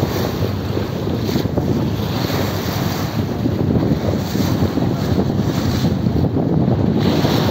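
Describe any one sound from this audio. Water splashes and churns beside a moving boat.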